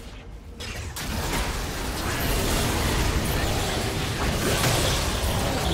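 Magic blasts crackle and whoosh in a busy fight.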